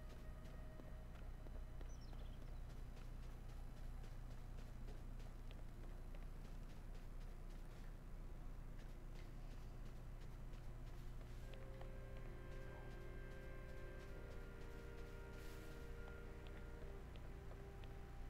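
Quick footsteps patter on grass and stone.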